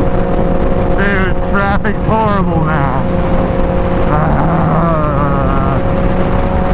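A motorcycle engine revs up sharply in quick bursts.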